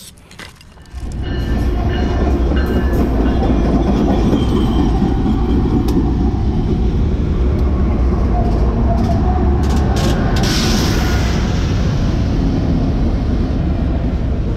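A freight train rumbles loudly past on the tracks.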